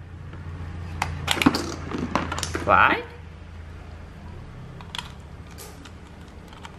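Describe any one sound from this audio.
Plastic toy parts click and rattle in someone's hands.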